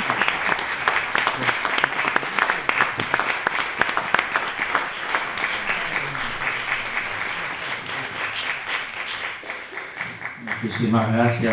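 An audience claps steadily.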